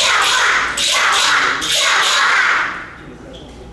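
A group of children shout together in unison in a large echoing hall.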